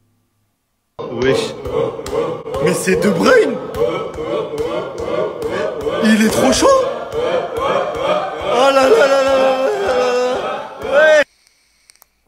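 A young man talks with animation close to a phone microphone.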